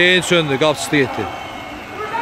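A man shouts loudly nearby.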